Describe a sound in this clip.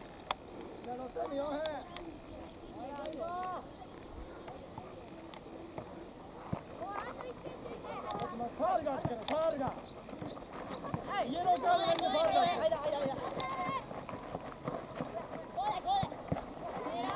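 Boys shout and call out to each other across an open field.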